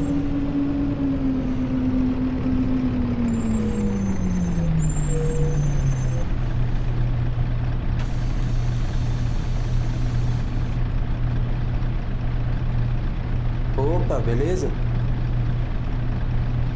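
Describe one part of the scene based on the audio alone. A bus engine hums and its pitch drops as the bus slows, then idles steadily.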